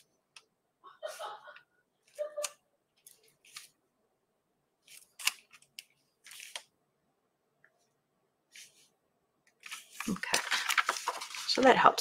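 A paintbrush dabs and scratches softly on paper.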